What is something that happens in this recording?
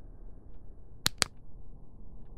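A flashlight switch clicks twice.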